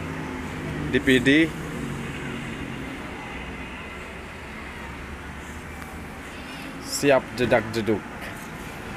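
A young boy speaks loudly in short bursts close by.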